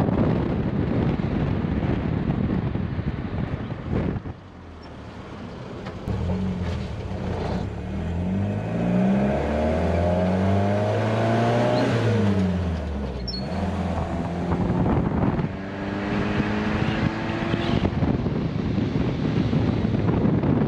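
Wind buffets loudly past the car.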